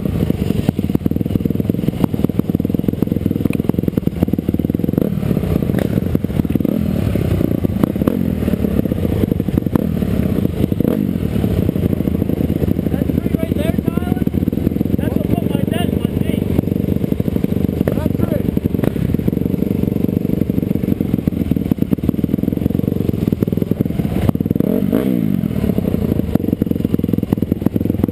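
A dirt bike engine roars close by, rising and falling as it revs.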